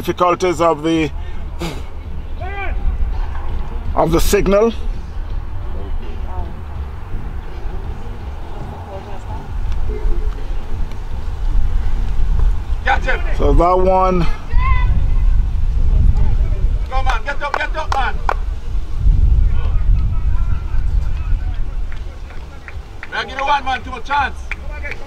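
Young men shout to one another across an open field.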